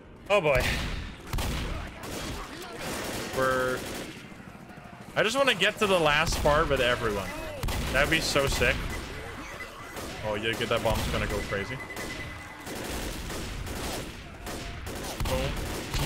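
Shotgun blasts boom in quick bursts.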